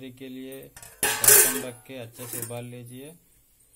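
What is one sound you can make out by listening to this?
A metal lid clanks onto a steel pot.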